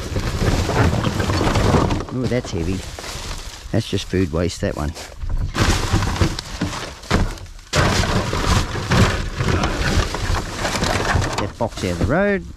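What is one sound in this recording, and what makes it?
Rubbish clatters and thumps inside a plastic bin.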